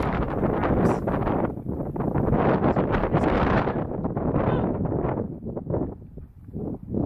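Wind blows in gusts across a microphone outdoors.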